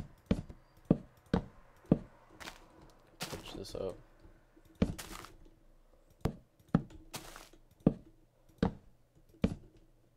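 Wooden blocks thud into place one after another with short, sharp knocks.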